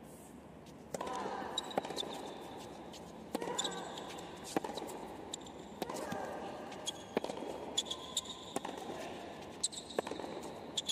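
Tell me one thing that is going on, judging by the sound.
Tennis balls are struck hard with rackets, back and forth.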